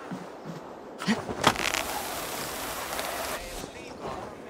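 A body plunges into leafy bushes with a loud rustle.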